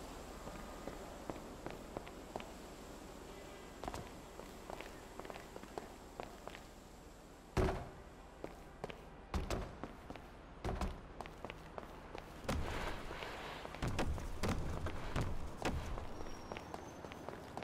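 Footsteps run quickly across a hard floor and pavement.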